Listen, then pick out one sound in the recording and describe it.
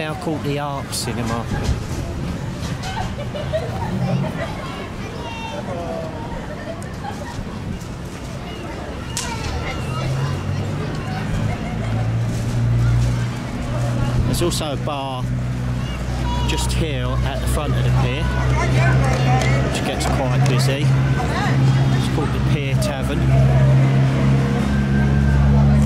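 Adult men and women talk casually nearby outdoors.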